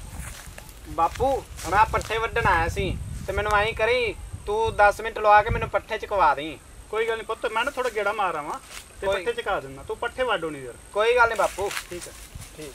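A man talks calmly outdoors nearby.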